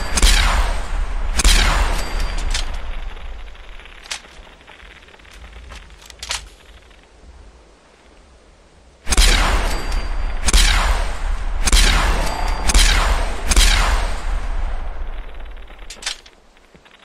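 Energy guns fire loud zapping blasts with deep booms, in quick bursts.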